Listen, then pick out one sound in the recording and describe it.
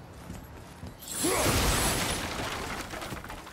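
Fire whooshes in a burst.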